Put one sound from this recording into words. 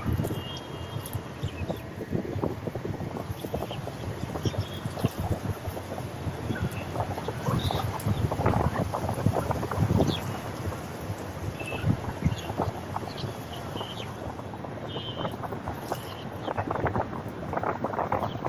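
Water laps and splashes gently close by.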